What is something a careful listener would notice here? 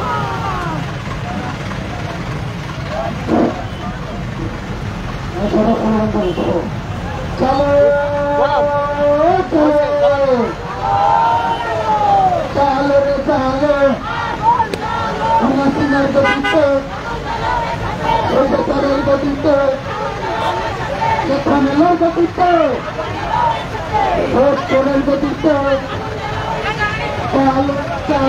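Footsteps of many people shuffle on a road.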